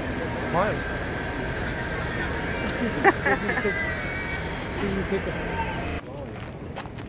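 A young woman laughs close to the microphone.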